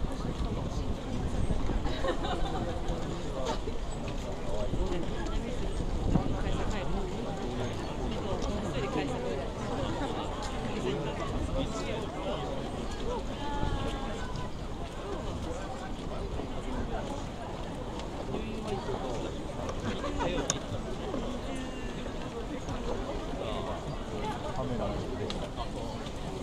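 A large crowd chatters outdoors, with many voices overlapping.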